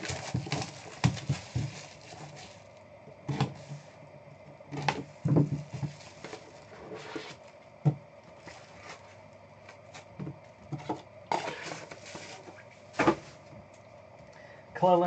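Cards tap and click on a table.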